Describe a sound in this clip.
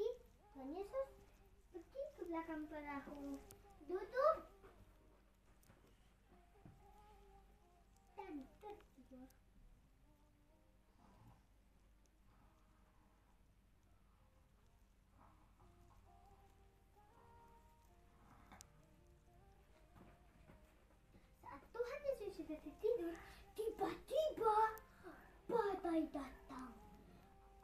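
A young boy sings loudly and with animation close by.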